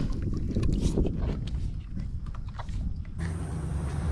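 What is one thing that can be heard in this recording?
Bison slurp and splash water from a trough.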